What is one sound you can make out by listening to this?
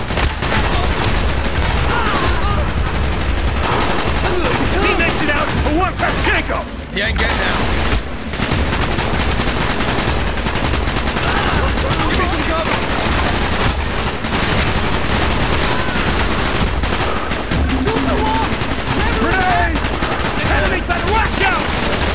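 Automatic rifles fire in rapid bursts close by.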